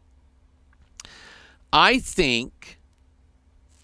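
An older man speaks with animation into a close microphone.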